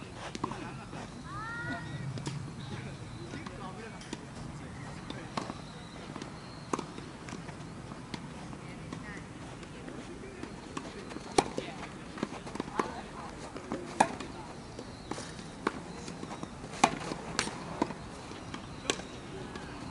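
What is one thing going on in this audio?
Tennis balls are struck with rackets outdoors.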